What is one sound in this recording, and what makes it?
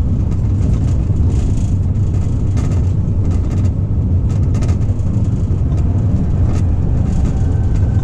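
Wind buffets loudly past the moving train.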